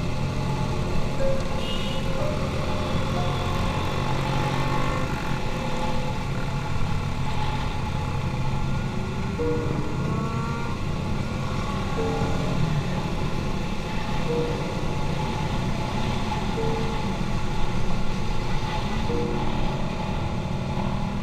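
Other motorcycle engines drone nearby.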